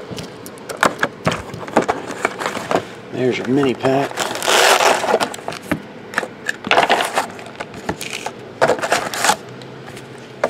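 A cardboard box scrapes and thumps as it is moved.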